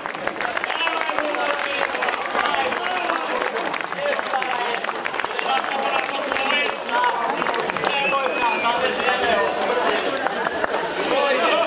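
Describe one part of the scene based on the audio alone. Several men sing together loudly through microphones.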